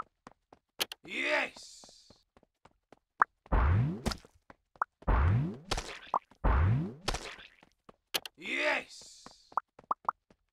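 A game plays sliding whooshing swoops.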